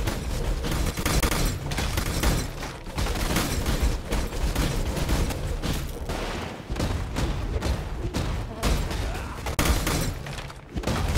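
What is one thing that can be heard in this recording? Spell blasts and explosions crackle and boom in quick succession.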